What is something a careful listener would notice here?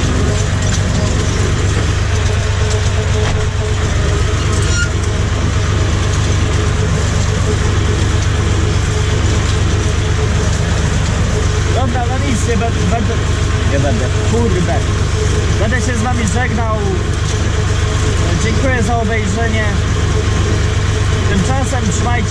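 A tractor's cab rattles and shakes over bumpy ground.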